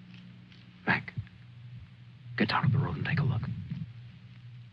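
A young man speaks in a low, urgent voice close by.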